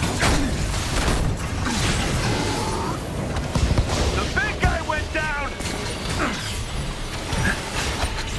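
Energy weapons whoosh and crackle.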